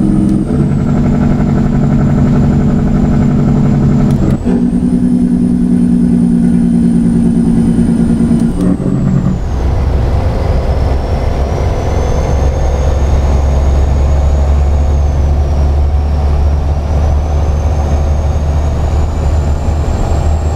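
A heavy truck engine rumbles steadily, its pitch dropping and rising with gear changes.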